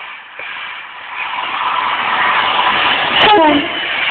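A second train rushes in close by with a rising roar.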